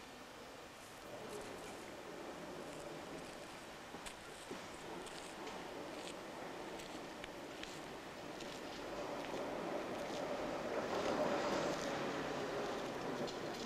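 A tram approaches, its wheels rumbling on the rails as it grows louder.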